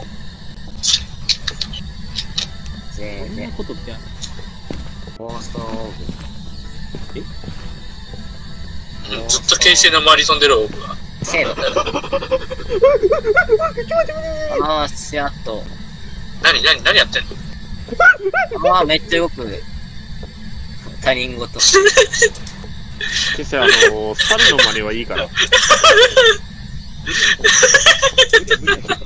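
A radio scans through stations with crackling static.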